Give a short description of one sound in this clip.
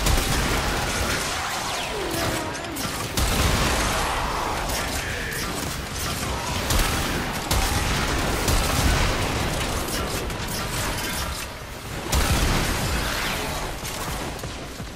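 Weapons slash and strike in a video game fight.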